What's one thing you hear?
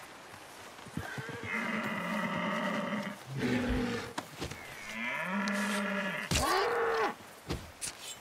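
A deer bleats loudly in distress.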